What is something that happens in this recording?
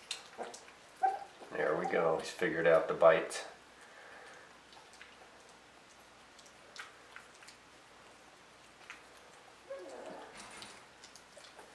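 A puppy whines and yelps loudly, close by.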